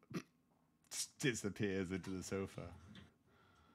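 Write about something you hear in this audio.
A man laughs into a close microphone.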